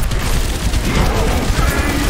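An explosion bursts with a deep boom.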